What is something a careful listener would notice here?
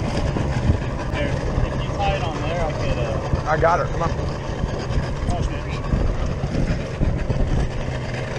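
Water splashes and laps against a boat's hull.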